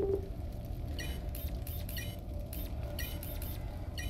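Short electronic blips chime several times.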